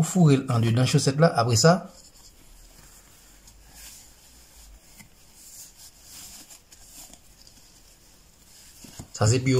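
Soft fabric rustles quietly as a sock is folded and turned.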